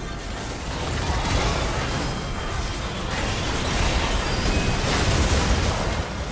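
Swords and blows clash rapidly.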